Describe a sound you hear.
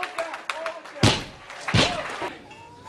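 A loaded barbell crashes onto the floor and bounces with heavy thuds.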